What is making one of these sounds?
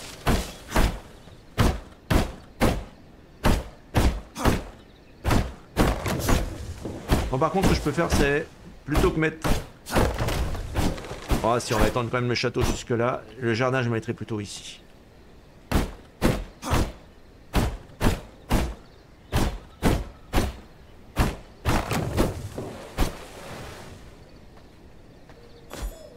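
Weapon blows land in quick, sharp hits.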